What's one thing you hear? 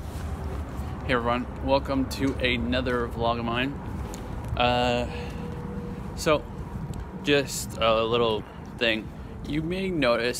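A young man talks with animation close to a phone microphone.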